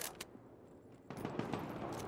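A rifle bolt clicks as the rifle is reloaded.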